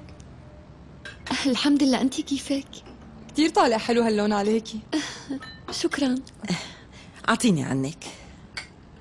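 A woman talks cheerfully.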